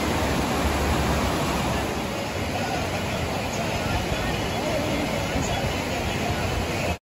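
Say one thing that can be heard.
A fast river rushes and splashes over rocks close by.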